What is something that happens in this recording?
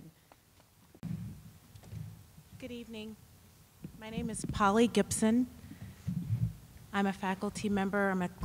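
A woman speaks with animation into a microphone, close and clear.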